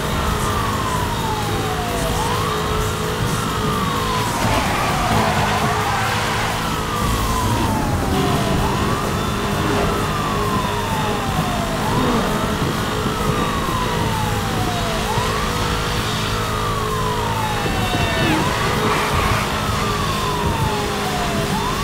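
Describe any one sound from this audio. A police siren wails up and down nearby.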